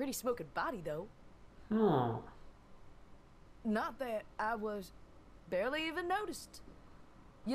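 A young woman speaks casually and teasingly, close by.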